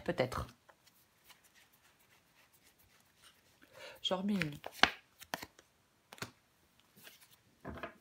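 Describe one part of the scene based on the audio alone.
Playing cards slide and tap onto a wooden table.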